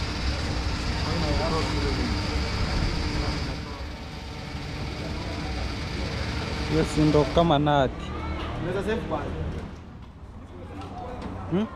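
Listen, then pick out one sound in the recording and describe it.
Men talk nearby with animation.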